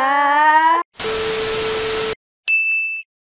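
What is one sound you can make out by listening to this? Television static hisses in a short burst.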